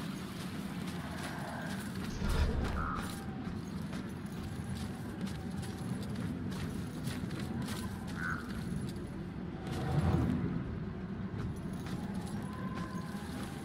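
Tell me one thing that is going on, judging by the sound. Footsteps tread on stone ground.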